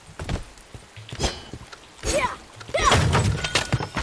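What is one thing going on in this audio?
A wooden crate smashes apart.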